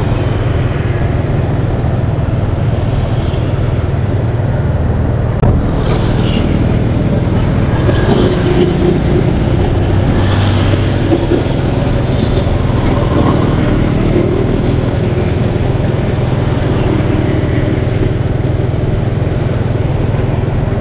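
Wind rushes steadily past a moving motorbike.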